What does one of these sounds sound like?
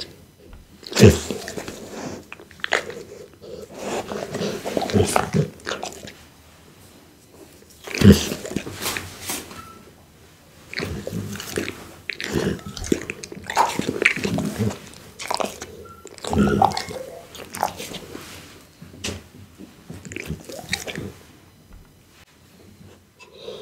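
A dog chews and crunches raw meat close to a microphone.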